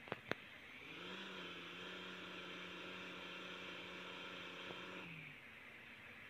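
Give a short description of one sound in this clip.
A small engine hums steadily, then stops.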